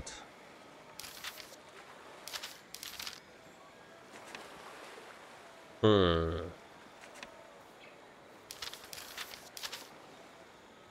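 A young man talks briefly and quietly into a close microphone.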